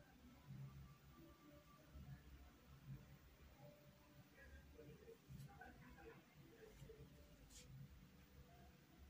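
A brush strokes softly across cloth.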